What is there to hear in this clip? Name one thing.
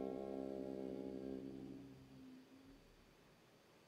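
A resonant bowl rings with a steady humming tone that slowly fades away.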